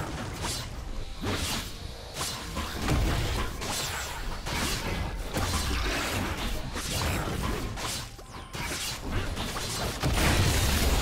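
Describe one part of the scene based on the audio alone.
Magical spell effects whoosh and crackle rapidly during a fight.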